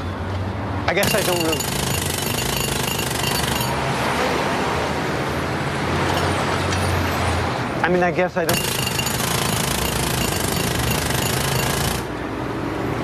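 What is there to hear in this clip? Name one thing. A jackhammer pounds loudly nearby.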